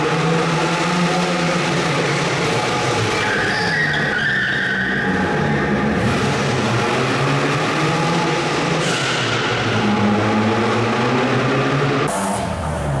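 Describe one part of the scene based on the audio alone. Tyres squeal on pavement as a car slides.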